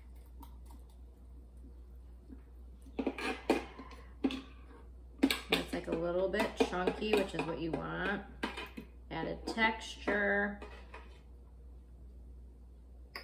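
A spoon scrapes against a plastic bowl.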